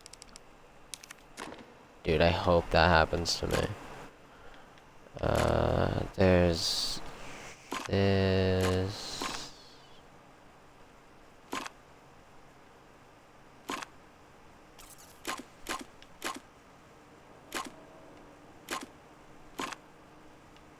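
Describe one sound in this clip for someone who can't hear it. Short soft clicks sound every second or two.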